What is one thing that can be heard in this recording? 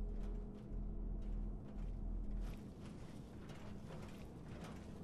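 Heavy metal footsteps clank on a hard floor.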